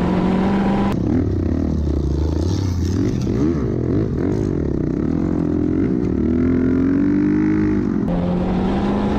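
A dirt bike engine revs and whines at a high pitch.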